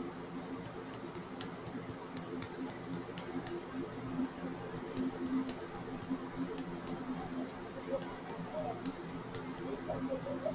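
A small glass bottle clicks and taps softly as its cap is twisted.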